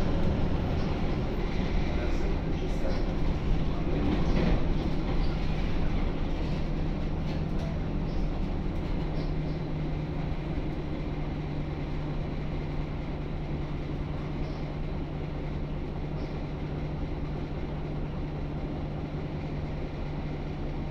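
A bus body rattles and creaks over the road.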